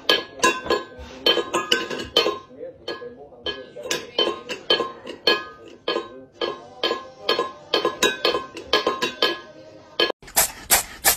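A metal bowl clatters and scrapes on a hard floor.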